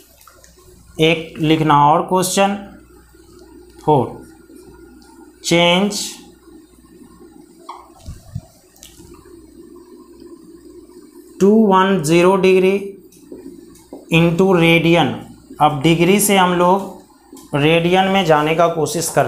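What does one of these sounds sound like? A man speaks clearly and calmly, as if teaching.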